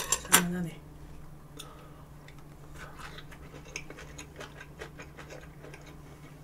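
A young woman chews food with soft smacking sounds.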